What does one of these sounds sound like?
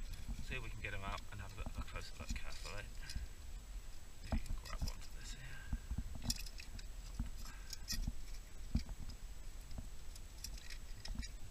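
A metal tool scrapes and taps against rock, close by.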